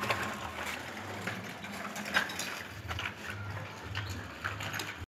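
A small bicycle's wheels roll and rattle on a concrete surface.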